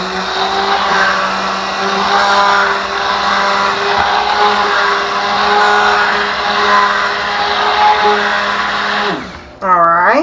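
A hand blender whirs steadily, churning liquid.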